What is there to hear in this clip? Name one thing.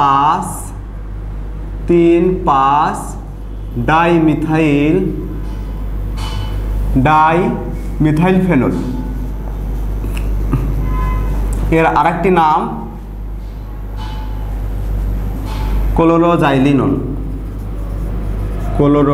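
A man speaks calmly and clearly close by, explaining in short phrases.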